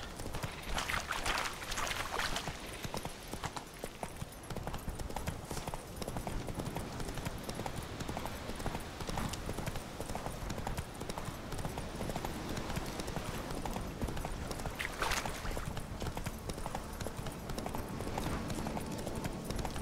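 Hooves thud steadily as a horse gallops along a dirt path.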